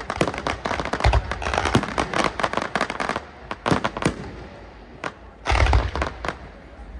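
Deep booms of fireworks thud and roll outdoors.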